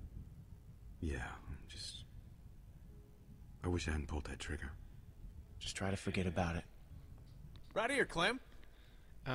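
A young man answers quietly and hesitantly.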